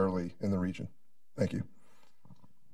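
A middle-aged man speaks into a microphone, asking a question.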